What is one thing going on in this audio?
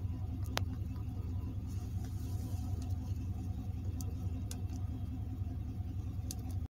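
Buttons on a car stereo click.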